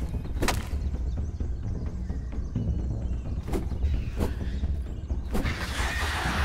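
A weapon swings and strikes with sharp hits.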